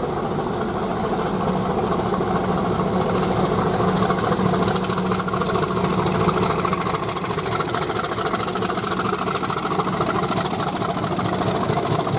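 Steel wheels rumble and clatter over rail joints.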